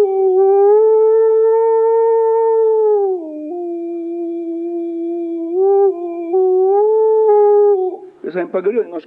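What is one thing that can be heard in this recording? A middle-aged man sings long, drawn-out notes close to a microphone.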